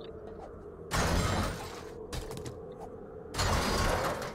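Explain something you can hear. Glass shatters and breaks apart.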